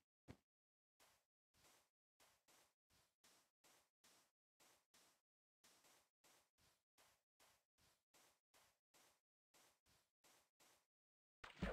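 Footsteps shuffle steadily on soft sand.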